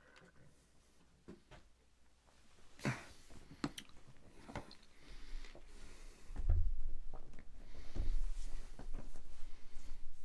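A man handles objects close by with soft knocks and rustles.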